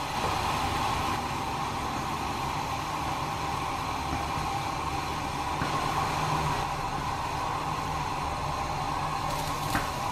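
Noodles splash as chopsticks stir them in boiling water.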